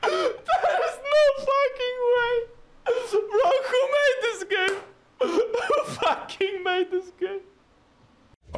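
A young woman speaks in a soft, high voice close to the microphone.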